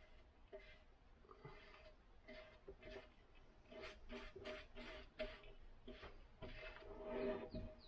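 A paintbrush swishes against wood.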